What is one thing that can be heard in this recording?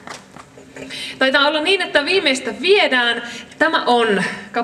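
A young woman speaks into a microphone in a lively way.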